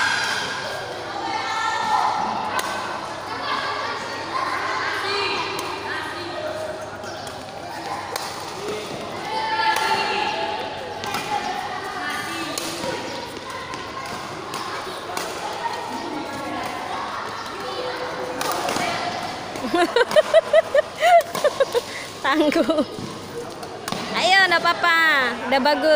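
Girls call out and chatter loudly.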